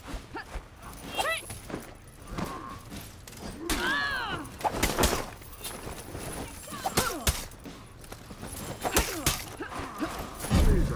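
Armoured fighters grunt and shout as they strike.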